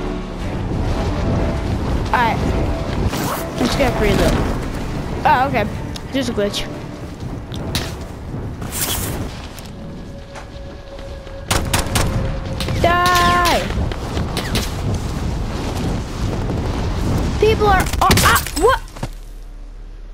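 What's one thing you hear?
Wind rushes loudly past during a fast fall through the air.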